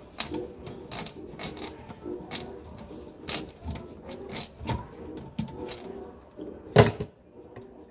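A screwdriver clicks and scrapes against a metal pipe clamp.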